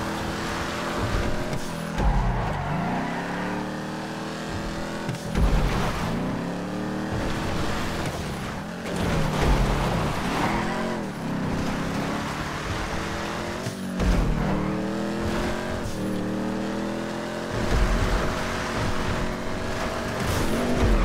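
A car engine revs hard, dropping and climbing in pitch as gears shift.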